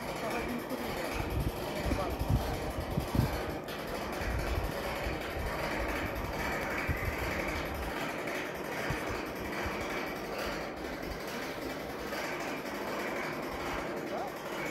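A large flag flaps in the wind.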